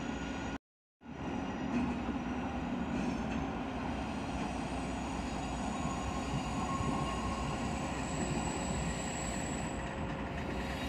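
A train rolls along the tracks with a steady rumble.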